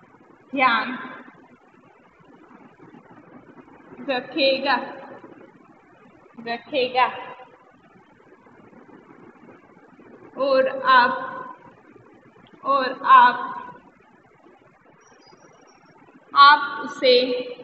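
A young woman speaks slowly in short phrases, as if reading out, close by.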